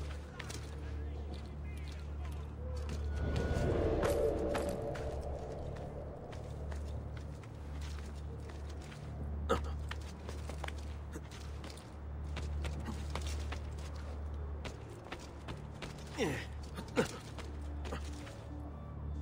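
Footsteps and hands thud and scrape as a climber scrambles over rooftops and ladders.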